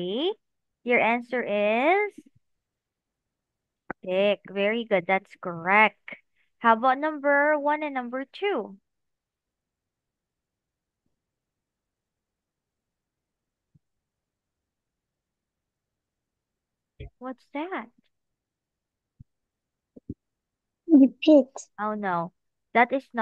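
A woman speaks clearly and slowly through an online call, with pauses.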